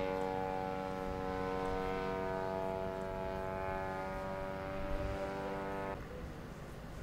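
A small propeller aircraft engine drones steadily in the distance.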